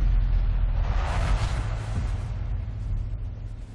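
A bright magical whoosh surges up and dies down.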